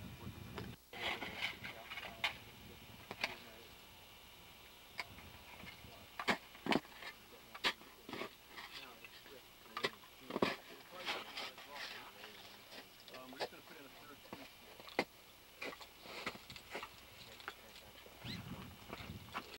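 Boots crunch on snow.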